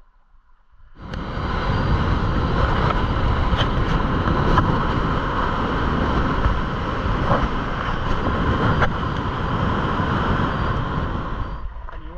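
Wind buffets loudly past a moving vehicle.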